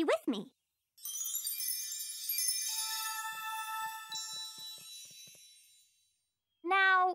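A magic wand makes a sparkling, tinkling chime that slowly fades.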